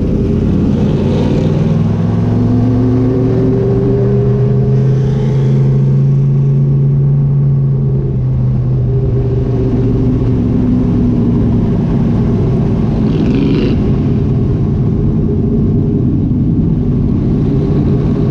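A race car engine roars loudly up close, rising and falling in pitch as the car speeds along.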